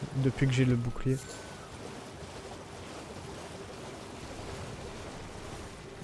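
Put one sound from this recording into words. A horse splashes through shallow water.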